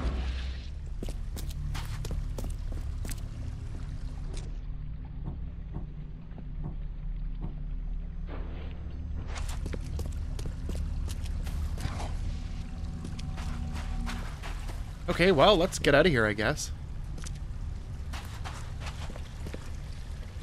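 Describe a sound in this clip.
Footsteps crunch over dirt and debris.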